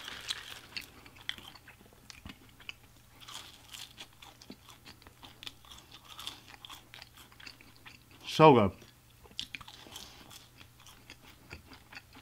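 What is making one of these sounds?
A man chews food with wet, crunchy mouth sounds close to a microphone.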